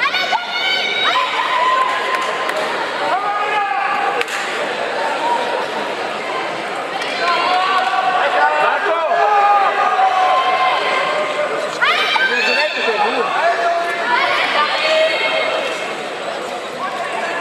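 Spectators shout and cheer loudly in a large echoing hall.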